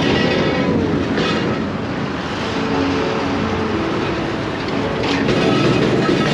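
A heavy truck engine rumbles close by.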